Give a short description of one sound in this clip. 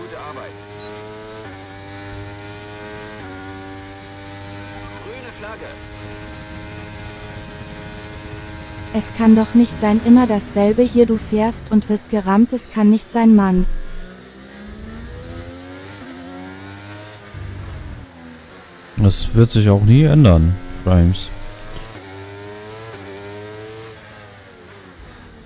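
A racing car engine whines steadily and shifts up through the gears.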